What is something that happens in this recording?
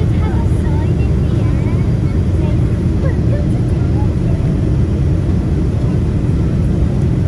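Turbofan engines and rushing air roar steadily inside the cabin of a jet airliner.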